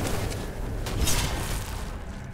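A bright chime rings out as a level is gained.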